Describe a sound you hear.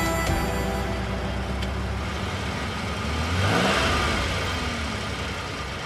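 A car engine hums as it drives slowly past.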